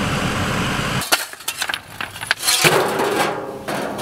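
A shovel scrapes against rocks.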